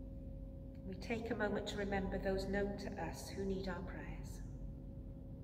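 A middle-aged woman speaks calmly into a microphone in a large echoing hall.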